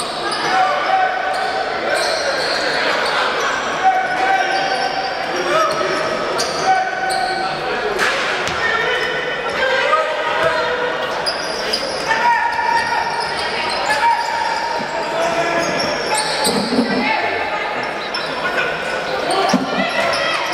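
A basketball bounces on a wooden court in an echoing indoor hall.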